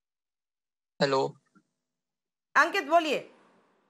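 A woman speaks with animation over a microphone, in short bursts.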